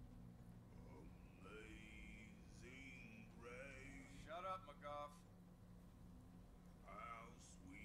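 A man sings slowly and unaccompanied.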